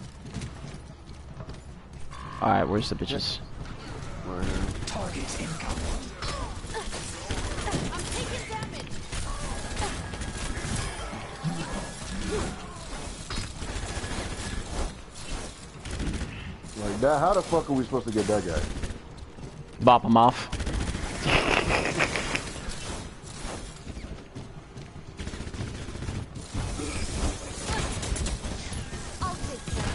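Rapid gunfire crackles in bursts.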